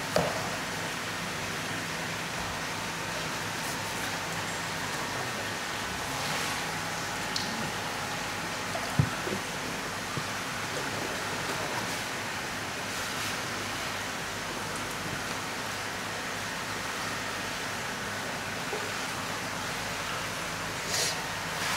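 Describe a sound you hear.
Water sloshes and splashes softly in a tub.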